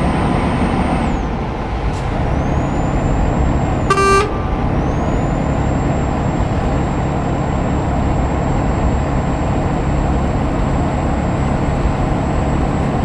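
A truck engine rumbles steadily while driving at speed.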